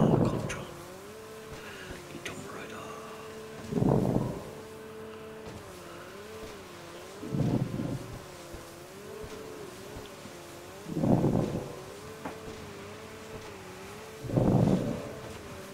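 A jet ski engine hums steadily, its pitch wavering up and down.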